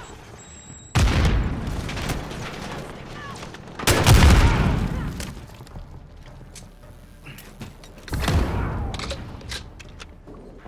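Loud explosions boom and rumble close by.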